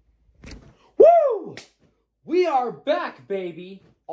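A young man shouts and cheers excitedly close by.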